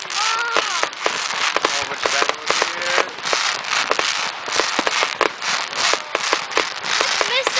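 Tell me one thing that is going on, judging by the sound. Fireworks crackle and hiss steadily.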